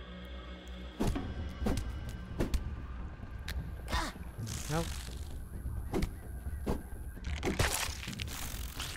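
Heavy blows thud against a large insect.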